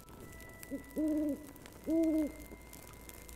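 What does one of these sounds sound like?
An owl hoots twice.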